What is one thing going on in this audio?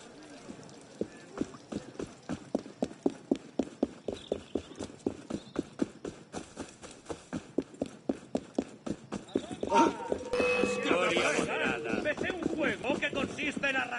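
Footsteps run quickly and rhythmically over hard ground.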